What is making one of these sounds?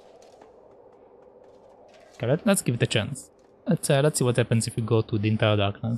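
Light footsteps tap on a wooden ladder rung by rung.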